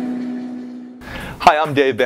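A man speaks calmly and clearly into a microphone, close by.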